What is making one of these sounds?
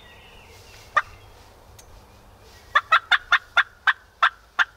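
A man blows a hand-held game call in a series of short, sharp yelps.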